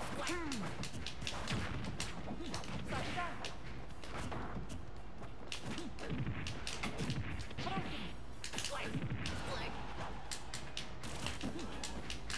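Video game hits and blasts crack and thump rapidly.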